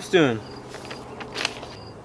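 Paper rustles as pages are flipped.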